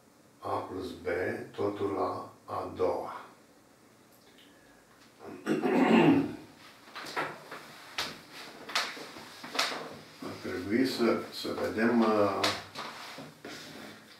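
An elderly man speaks calmly, explaining, close by.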